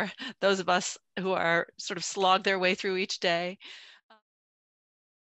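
A middle-aged woman laughs over an online call.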